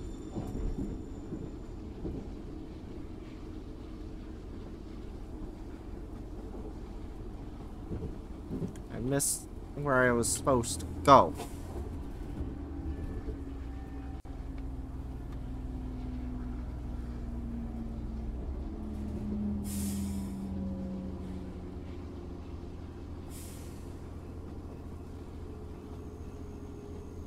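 A rail cart rumbles and rattles steadily along its tracks.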